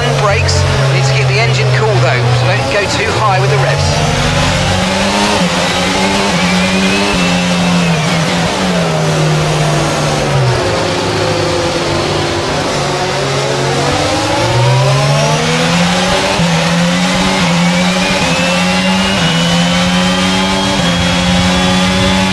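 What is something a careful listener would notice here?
A racing car engine revs up and down through the gears.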